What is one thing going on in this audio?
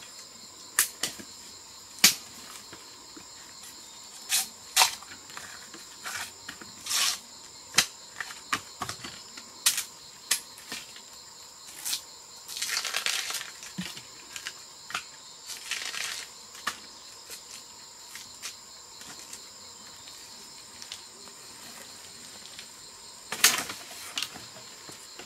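Dry leaves and twigs crackle underfoot.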